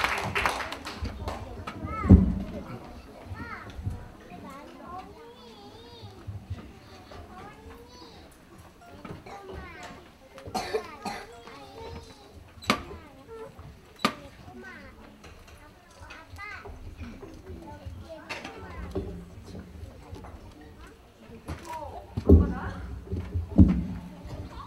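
Children and adults talk and murmur in a large echoing hall.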